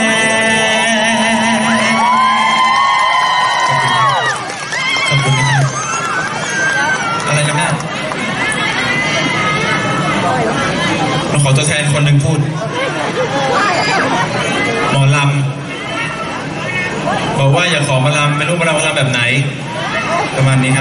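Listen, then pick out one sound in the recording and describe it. A young man sings into a microphone through loudspeakers.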